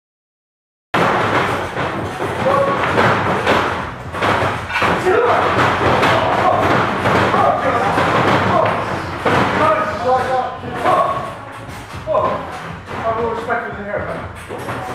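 A man shouts with energy close by.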